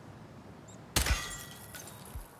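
A pistol fires a sharp, loud shot.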